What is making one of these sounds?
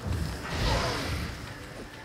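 A fire spell bursts with a crackling whoosh.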